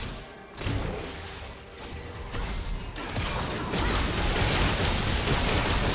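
Magic spells blast and crackle in a fight.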